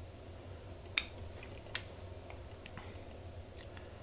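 Small scissors snip a few times.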